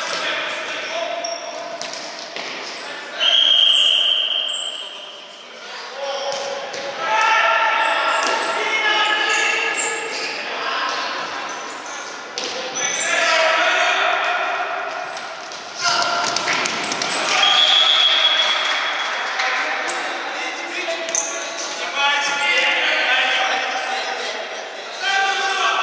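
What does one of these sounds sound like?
Players shout to each other in a large echoing hall.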